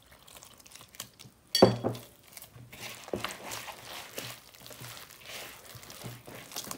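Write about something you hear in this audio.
A hand squeezes and kneads sticky dough with soft, wet squelches.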